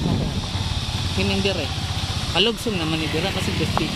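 A motorcycle engine hums as it approaches.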